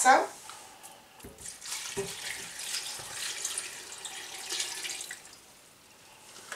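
Water pours and splashes into a pot.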